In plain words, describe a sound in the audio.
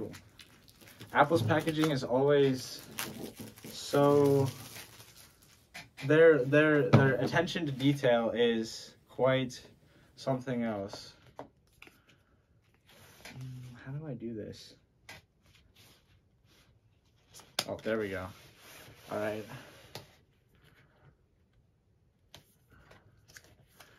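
A box scrapes and taps on a wooden table.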